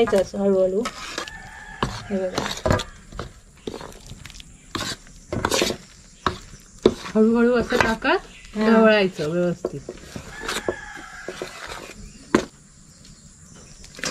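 A spatula scrapes and taps against a metal bowl.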